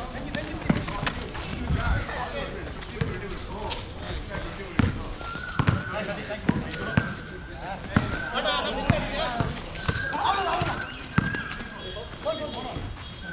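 Young men shout and call out to each other during the game.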